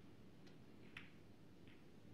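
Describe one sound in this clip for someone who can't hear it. Snooker balls click together once.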